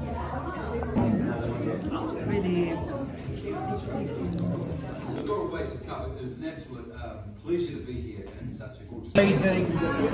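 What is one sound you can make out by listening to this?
A crowd of adults chatters in a busy room.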